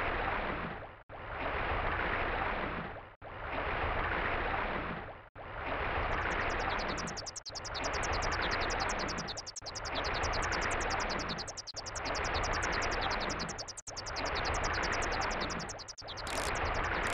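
Underwater water rushes in slow, regular surges.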